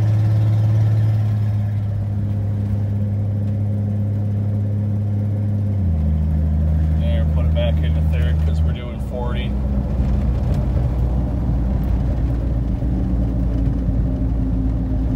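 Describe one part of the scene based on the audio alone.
Tyres roll over a packed snowy road.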